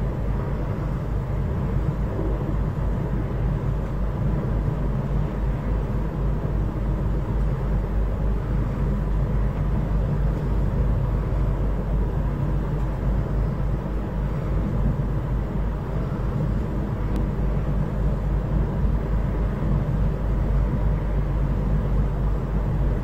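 A boat engine rumbles low and steady.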